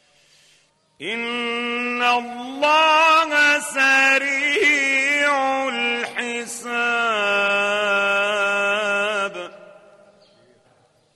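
An elderly man chants in a melodic, drawn-out voice, heard through a microphone with echo.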